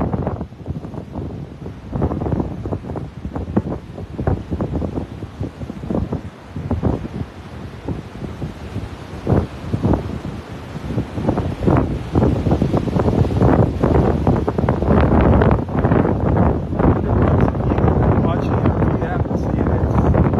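Small waves wash onto a beach and break steadily.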